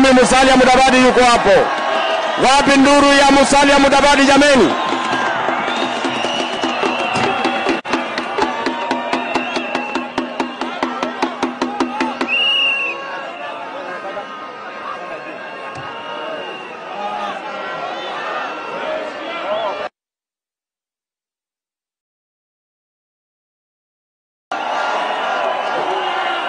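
A large crowd of men and women chants and cheers loudly outdoors.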